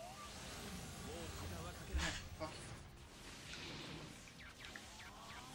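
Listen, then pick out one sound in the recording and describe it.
Crackling energy surges with a rushing whoosh.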